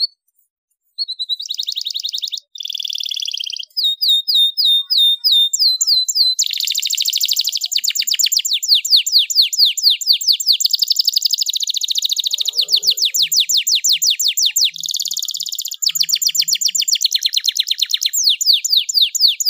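A canary sings loudly and close by in fast trills and rolling warbles.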